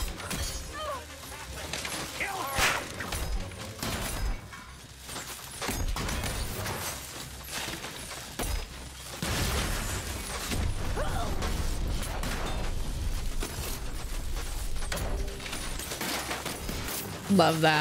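Punches and kicks thud and clatter in a video game fight.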